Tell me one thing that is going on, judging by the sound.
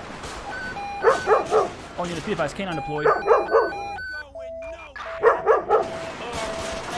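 A dog barks loudly in short bursts.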